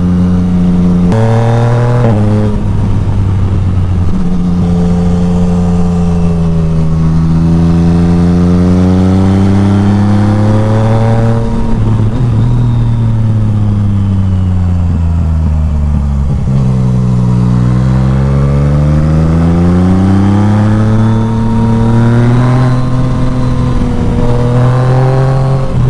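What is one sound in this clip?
A motorcycle engine hums steadily, its pitch rising and falling as the rider speeds up and slows down.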